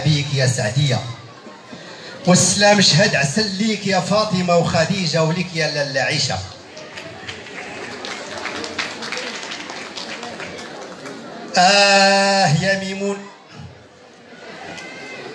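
A seated audience murmurs in a large echoing hall.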